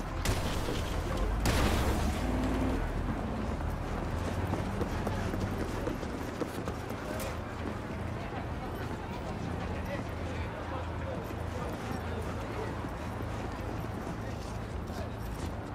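A crowd of people murmurs on a busy city street.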